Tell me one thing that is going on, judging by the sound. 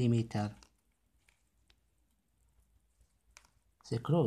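Small metal screws click softly as they are picked up.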